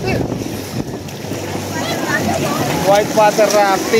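Water splashes as a child swims.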